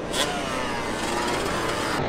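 A dirt bike engine revs and whines.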